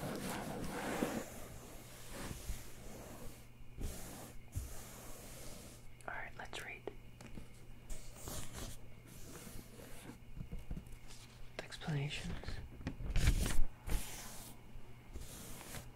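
Hands brush softly over paper pages.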